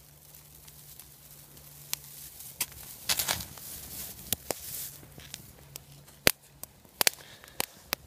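Flames crackle and pop in burning dry grass.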